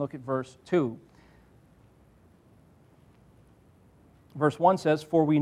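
A man reads aloud through a microphone, pausing between phrases.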